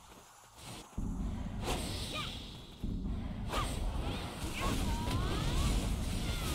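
A sword swooshes through the air in quick slashes.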